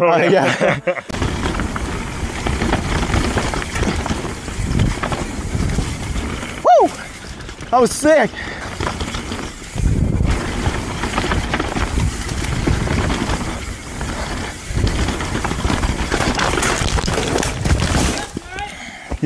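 Bicycle tyres rumble and rattle over a rough dirt trail.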